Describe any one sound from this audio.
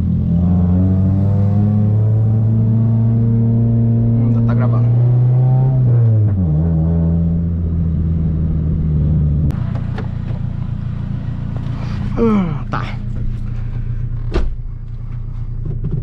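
A car engine hums steadily and shifts gears while driving.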